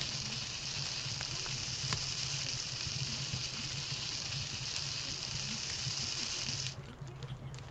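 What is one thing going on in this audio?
A fire crackles and hisses.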